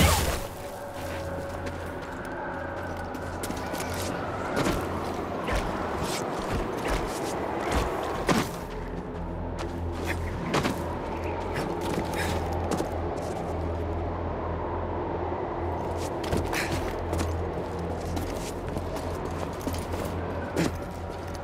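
Footsteps scrape on stone.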